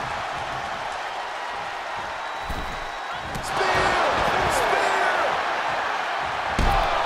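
A large crowd cheers and roars in a big arena, growing louder.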